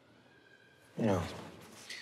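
A man answers quietly.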